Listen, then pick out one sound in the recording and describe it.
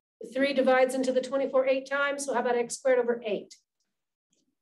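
A woman speaks clearly through a microphone, explaining.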